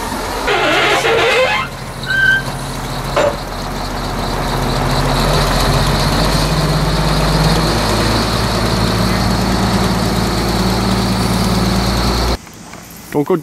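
A heavy loader's diesel engine rumbles steadily nearby.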